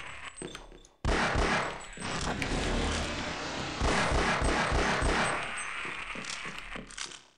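A pistol fires sharp shots in quick bursts.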